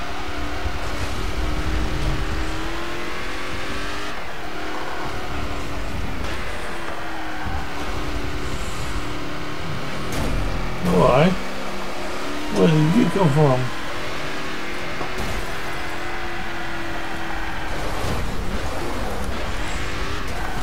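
A racing car engine roars and revs steadily up and down.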